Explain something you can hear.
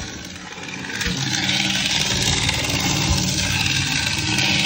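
A small model train whirs along metal track.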